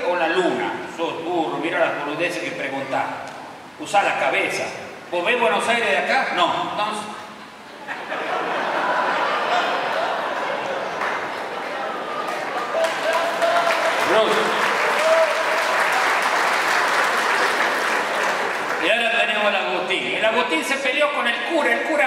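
A middle-aged man speaks with animation into a microphone, heard through loudspeakers in a large hall.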